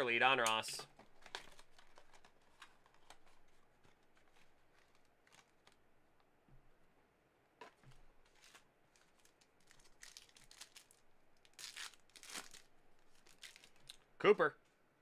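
Card wrappers crinkle and rustle as hands tear them open.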